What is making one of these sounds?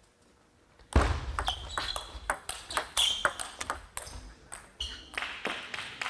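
A table tennis ball clicks quickly back and forth off paddles and a table in a large echoing hall.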